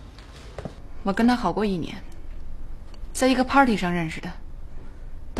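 A young woman talks calmly and thoughtfully, close by.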